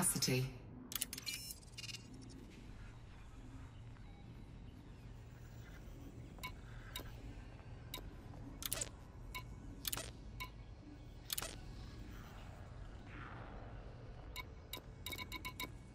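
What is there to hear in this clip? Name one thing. Short electronic menu clicks and beeps sound now and then.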